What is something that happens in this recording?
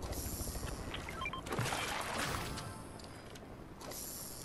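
A fishing reel whirs as a line is reeled in.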